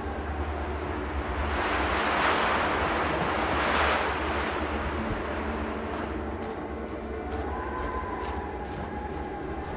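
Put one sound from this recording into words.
A strong wind howls in gusts through a snowstorm.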